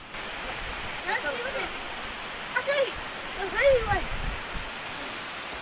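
Children shout and laugh playfully outdoors.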